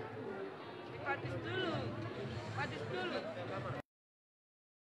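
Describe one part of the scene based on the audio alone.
A man speaks up close amid the crowd.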